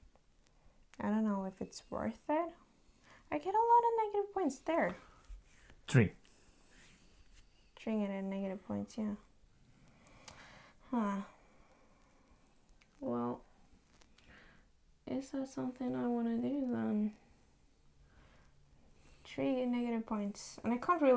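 A young woman speaks thoughtfully and close by, in short bursts with pauses.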